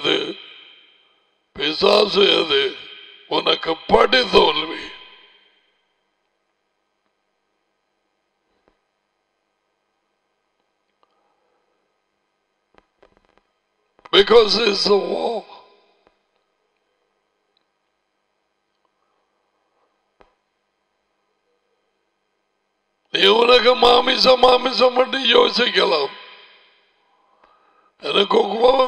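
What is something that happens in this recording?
An older man speaks with animation into a close microphone, pausing at length between phrases.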